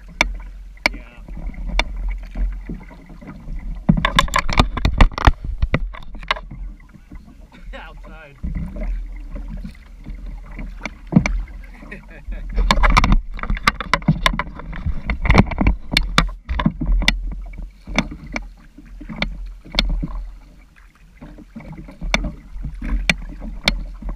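A kayak paddle splashes and dips in the water.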